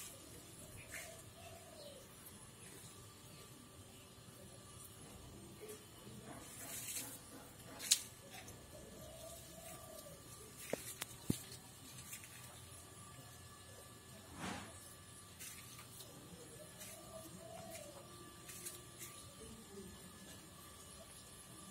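Plant leaves rustle softly as a hand handles them.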